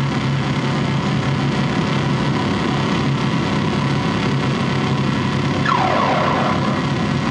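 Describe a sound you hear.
Loud electronic music plays over loudspeakers.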